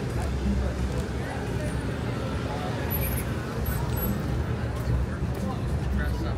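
Traffic rumbles past on a city street.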